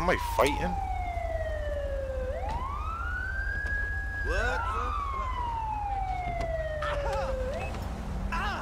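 A police siren wails up and down nearby.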